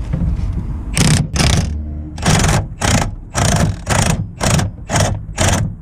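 A ratchet wrench clicks back and forth in short bursts.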